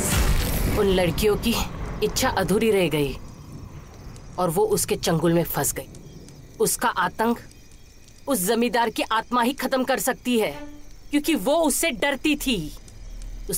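A woman speaks loudly and urgently nearby.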